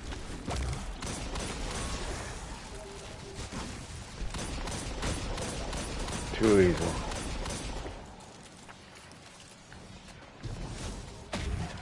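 Energy blasts crackle and burst.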